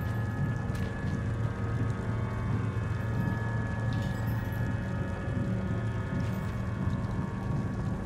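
Small footsteps patter and thump on hollow metal.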